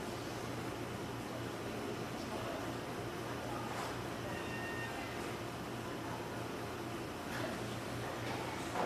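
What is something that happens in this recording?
A large crowd murmurs softly in a hall.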